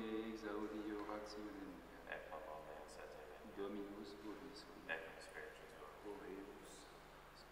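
A man chants slowly, echoing in a large hall.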